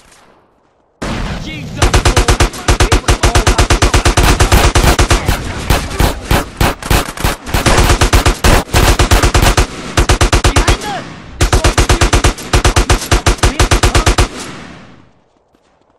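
Guns fire in rapid, loud bursts.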